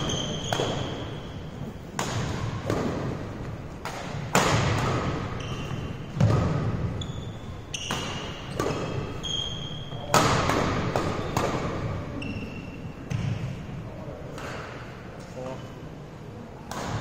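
Sneakers squeak on a wooden court floor.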